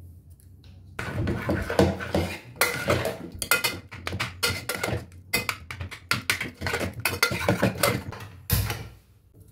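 A metal ladle stirs thick lentil mash in a pressure cooker.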